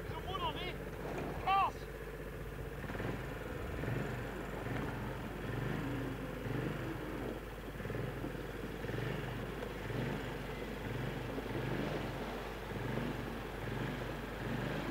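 A small engine chugs in a steady, pulsing rhythm nearby.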